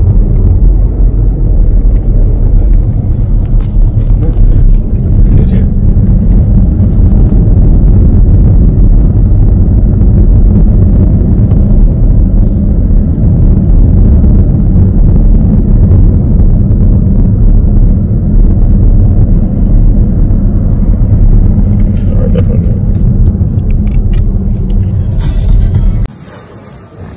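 A car drives along a motorway with a loud, steady low rumble of road noise.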